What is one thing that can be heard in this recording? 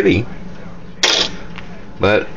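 A small metal disc clinks against glass.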